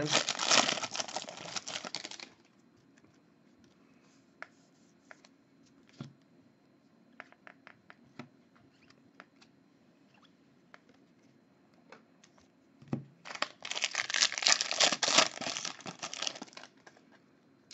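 A foil wrapper crinkles and tears as it is ripped open.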